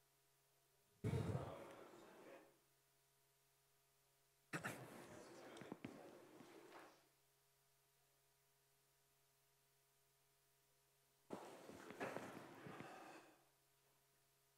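A man speaks in short bursts in a large echoing hall.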